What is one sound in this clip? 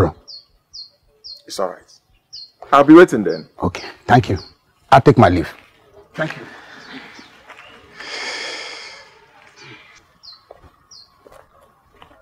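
A younger man answers firmly close by.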